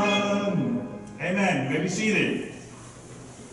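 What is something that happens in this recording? A man speaks with feeling through a microphone in a large echoing room.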